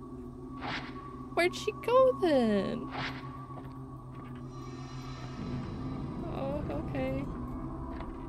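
A young woman speaks with animation into a close microphone, her voice swooping in pitch.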